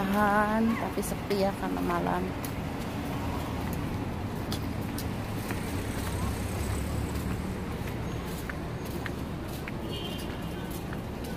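Traffic hums steadily on a nearby street.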